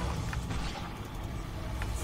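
Fire roars in a burst of flame.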